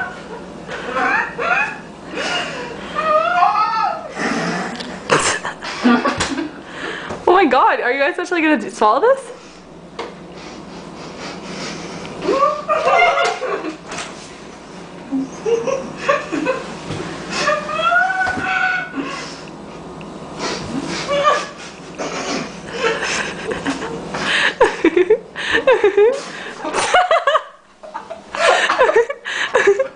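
Young women laugh and shriek loudly close by.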